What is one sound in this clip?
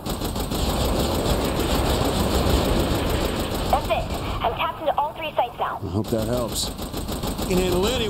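Gunfire and explosions bang in quick bursts.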